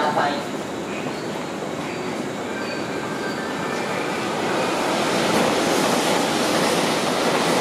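A train rolls slowly along a platform, rumbling and screeching as it stops.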